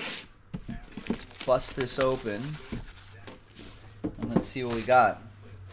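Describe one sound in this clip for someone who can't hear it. Plastic wrapping crinkles as hands handle it.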